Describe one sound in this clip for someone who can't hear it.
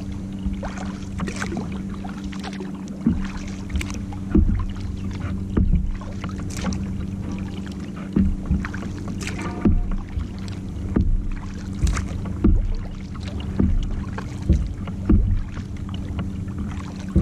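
A kayak paddle splashes and dips into water in a steady rhythm.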